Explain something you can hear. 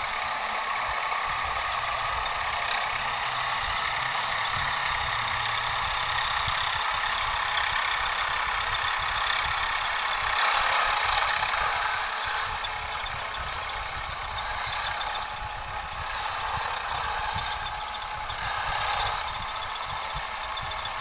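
A tractor engine rumbles steadily in the distance.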